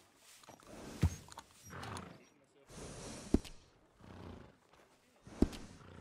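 A short click sounds as a menu option is chosen.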